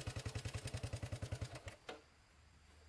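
A motorbike engine idles with a quick, steady putter.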